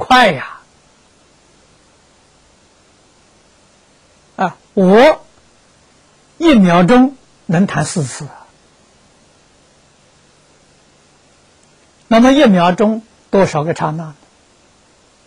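An elderly man speaks with animation into a close microphone, in short bursts with pauses.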